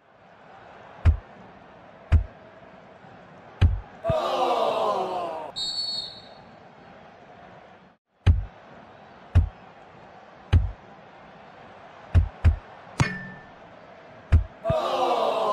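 A ball thumps sharply as it is kicked and headed.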